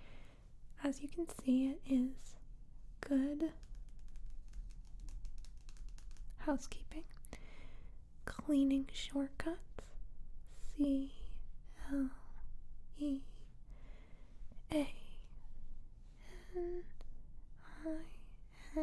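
Fingernails tap on a glossy magazine cover, close by.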